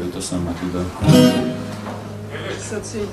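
An acoustic guitar is strummed once and rings.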